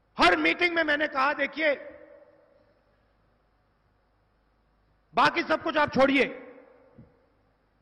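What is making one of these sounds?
A man speaks forcefully into a microphone over loudspeakers, his voice echoing outdoors.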